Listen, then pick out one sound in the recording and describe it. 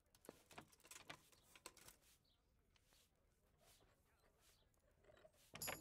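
A metal lock mechanism clicks and scrapes softly.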